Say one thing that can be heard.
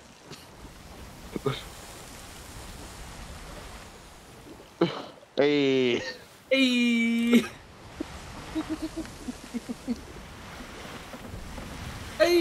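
Waves wash and roll against a wooden ship at sea.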